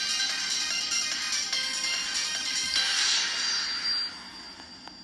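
Upbeat electronic music plays from a phone's small speaker.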